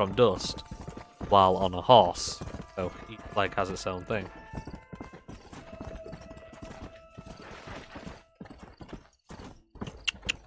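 A horse gallops, its hooves thudding on dry ground.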